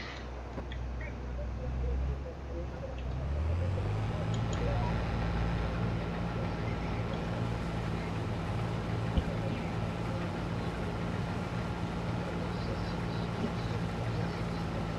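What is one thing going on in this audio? A combine harvester's header whirs as it cuts crops.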